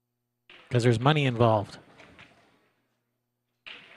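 A cue stick strikes a ball with a sharp click.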